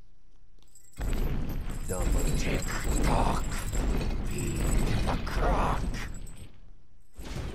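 A huge beast growls and roars up close.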